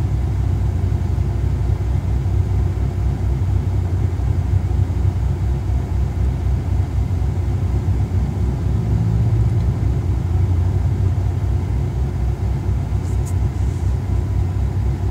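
A car engine hums with a low, steady rumble.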